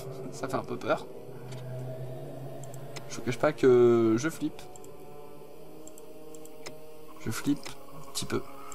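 Soft menu clicks sound as options are chosen.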